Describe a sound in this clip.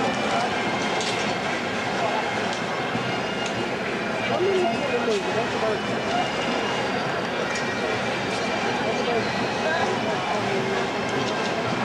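A cymbal clashes now and then.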